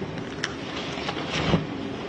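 Papers rustle.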